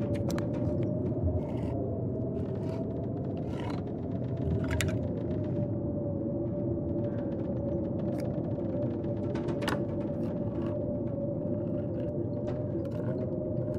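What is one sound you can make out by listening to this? A tin can is pried open with a metal scraping.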